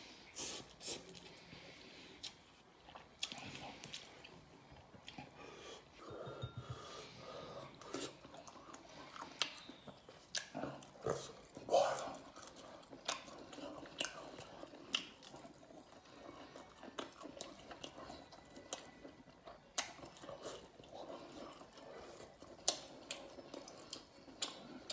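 A man slurps noodles loudly, close up.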